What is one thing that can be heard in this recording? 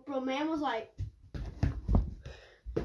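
A ball thuds on a carpeted floor.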